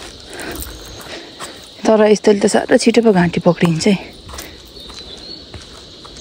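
Footsteps scuff on a dirt path outdoors.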